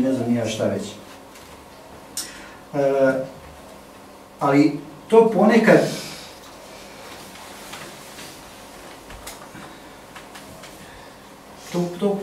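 A man speaks into a microphone in short bursts with long pauses.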